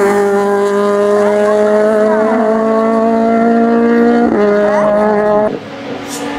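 A rally car engine revs hard and loud as the car climbs a road, briefly dropping in pitch at a gear change.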